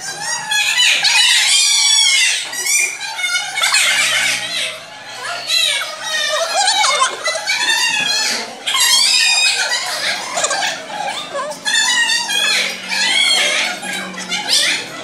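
Many young children chatter and shout loudly in a room.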